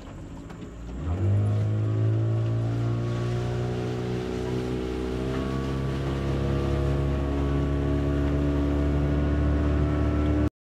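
A boat's outboard motor starts and drones steadily.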